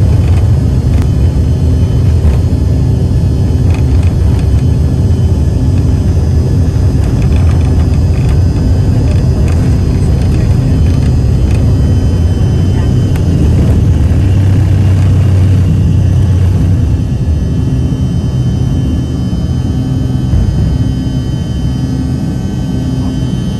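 Jet engines roar at takeoff thrust, heard from inside an airliner cabin.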